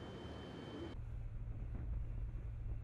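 Wind buffets the microphone outdoors at sea.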